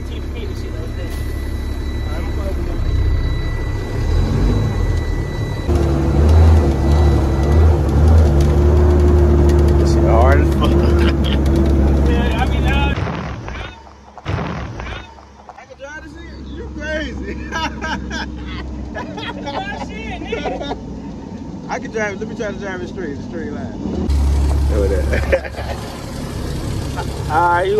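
A truck engine rumbles loudly up close.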